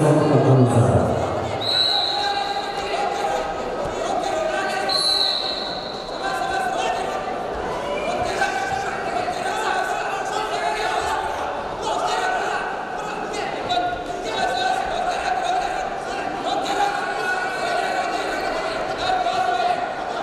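A crowd in a large echoing hall cheers and shouts.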